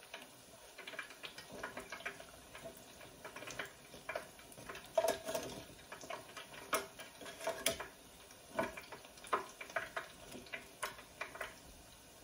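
Metal tongs clatter against a pot.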